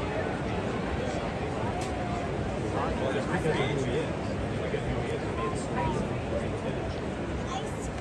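A large stadium crowd murmurs and chatters steadily all around.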